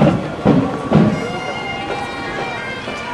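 Bagpipes start up with a steady droning tone.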